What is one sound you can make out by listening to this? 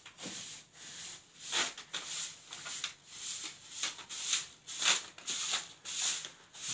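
A broom sweeps across a hard floor in quick, repeated strokes.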